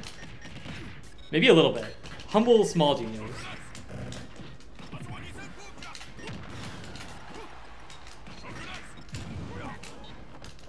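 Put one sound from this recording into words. Video game punches and blasts thud and crackle.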